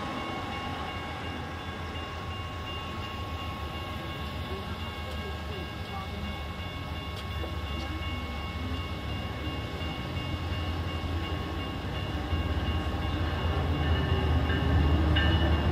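A car pulls up and idles nearby.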